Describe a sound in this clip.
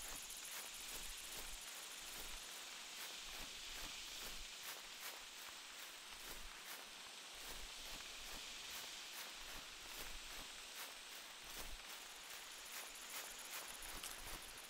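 Footsteps crunch steadily through grass and undergrowth.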